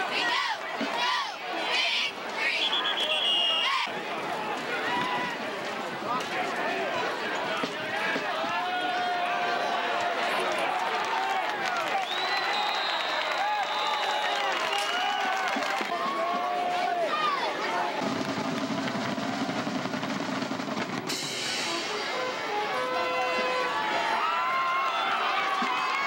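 A crowd of spectators cheers and shouts close by, outdoors.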